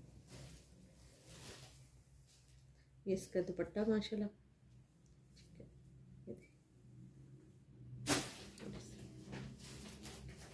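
Fabric rustles softly as it is handled.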